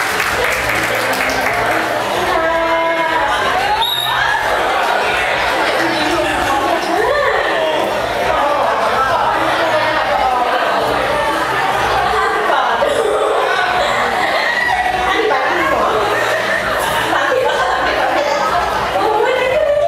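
Music plays loudly over loudspeakers.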